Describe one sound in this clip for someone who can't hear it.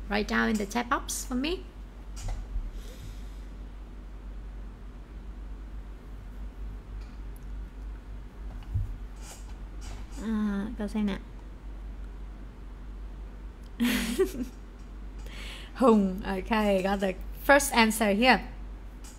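A young woman speaks calmly and clearly into a close microphone, with pauses.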